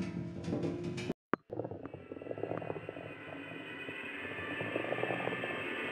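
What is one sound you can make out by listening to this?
A heavy ball rolls and rumbles along a wooden track.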